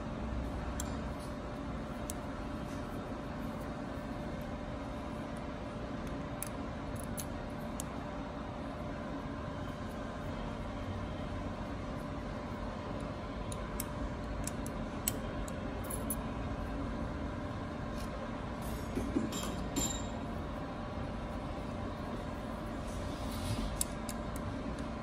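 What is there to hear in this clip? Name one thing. Small metal tools click and scrape against a metal spring.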